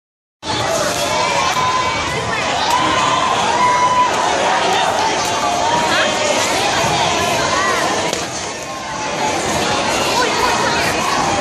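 Children's voices chatter and shout loudly in a large echoing hall.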